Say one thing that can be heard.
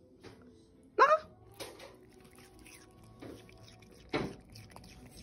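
A small dog chews and smacks its lips on a bite of food.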